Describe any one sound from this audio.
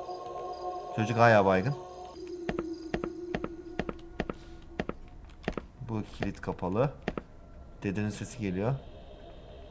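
A young man speaks in short, animated bursts into a close microphone.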